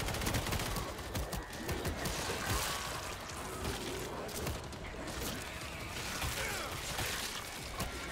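Zombies growl and snarl.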